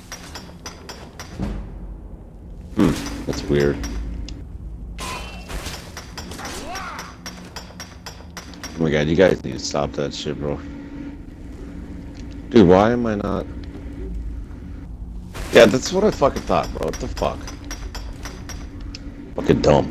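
A pickaxe strikes rock with sharp metallic clinks.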